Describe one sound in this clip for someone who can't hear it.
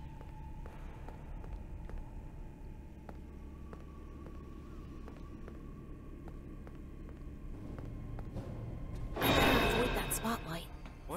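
Soft footsteps pad steadily across a floor.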